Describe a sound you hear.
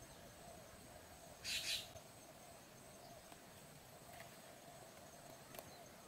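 A small bird rustles briefly through dry grass.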